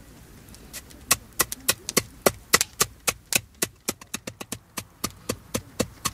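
A wooden mallet knocks rapidly and repeatedly.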